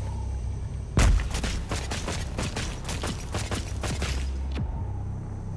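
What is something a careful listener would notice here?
Ice crunches and rattles in quick bursts.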